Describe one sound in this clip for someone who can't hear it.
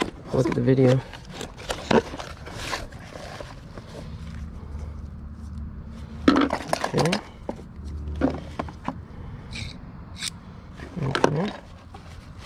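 Small plastic objects rustle and rattle in a cardboard box.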